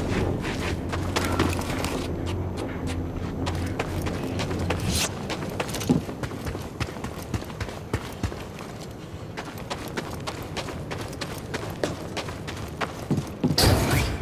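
Footsteps patter on a metal floor.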